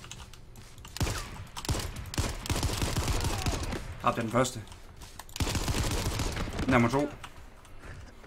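A rifle fires bursts of loud shots.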